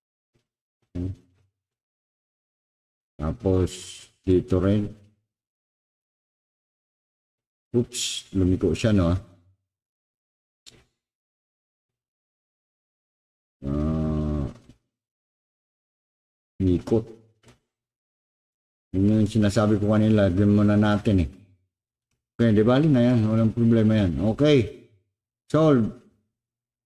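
An elderly man speaks calmly in short bursts, close to a microphone.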